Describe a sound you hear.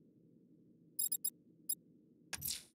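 Short electronic menu clicks sound.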